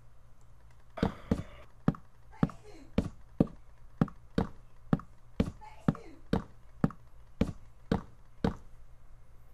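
Wooden blocks thud one after another as they are placed in quick succession.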